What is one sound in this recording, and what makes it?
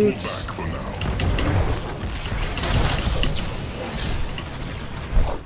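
Video game spell effects zap and clash.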